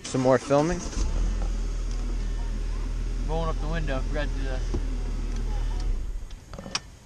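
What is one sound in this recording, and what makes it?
A car engine idles with a low steady hum, then shuts off.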